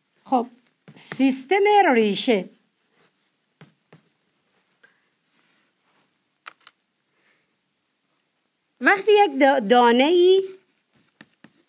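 A woman speaks calmly and clearly, close by.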